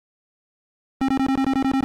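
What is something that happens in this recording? An old video game gives off a harsh, pulsing electronic buzz.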